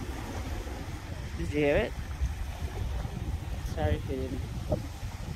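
Small waves wash gently onto a pebble shore.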